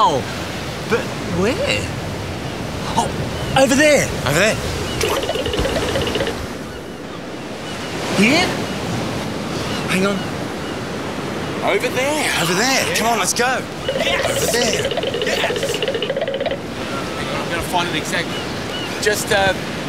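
Several men shout and call out with animation outdoors.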